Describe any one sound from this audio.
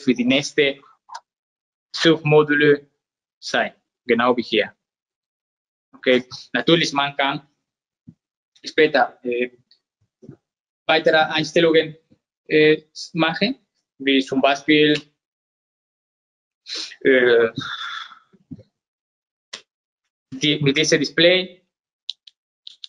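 A young man speaks calmly and clearly, close by, pausing between phrases.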